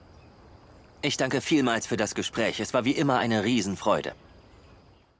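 A young man speaks calmly into a handheld microphone.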